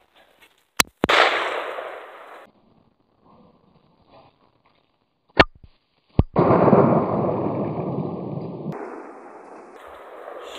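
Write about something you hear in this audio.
A shotgun fires loudly outdoors, echoing and rumbling away.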